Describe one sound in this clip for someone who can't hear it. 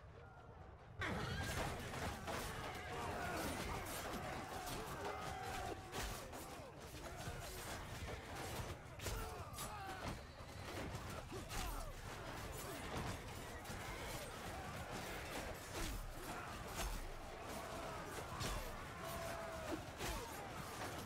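Many men shout and yell in battle.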